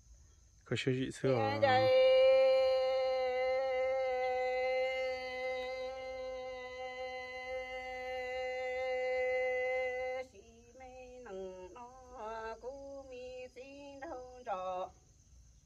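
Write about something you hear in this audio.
A woman sings outdoors, holding one long note and then a few shorter phrases.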